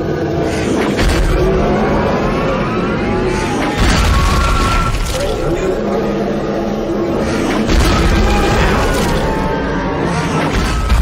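A huge creature roars with a deep rumble.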